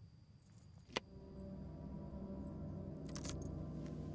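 A car engine starts and idles with a low rumble.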